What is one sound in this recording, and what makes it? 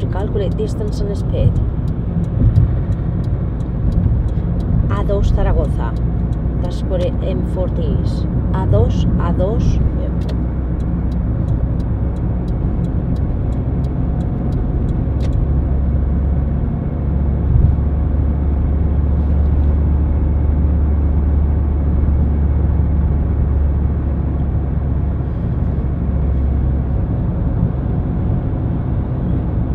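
A car engine hums steadily with tyres rumbling on the road.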